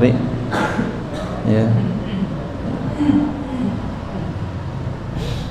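A man speaks calmly into a microphone, reading out.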